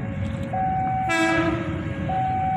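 A train horn sounds briefly.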